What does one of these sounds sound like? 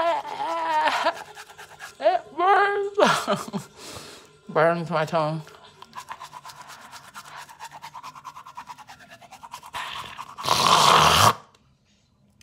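A young woman groans and gags loudly, close by.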